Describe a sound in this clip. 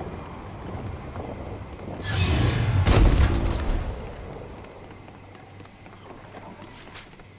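Footsteps of a game character patter on wooden ramps.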